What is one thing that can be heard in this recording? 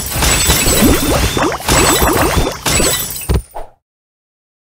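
Game blocks burst with a rush of popping and sparkling effects.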